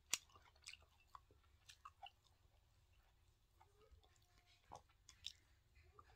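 Chopsticks clink against a bowl.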